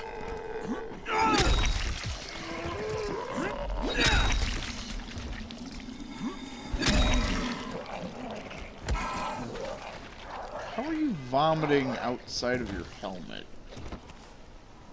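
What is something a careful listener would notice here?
Creatures snarl and growl.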